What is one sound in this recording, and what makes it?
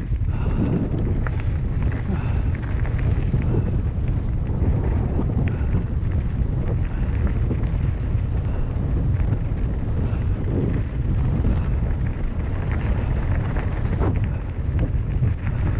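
Wind rumbles steadily against the microphone outdoors.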